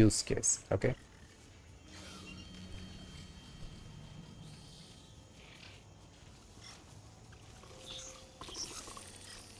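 A mechanical creature hums and whirs nearby.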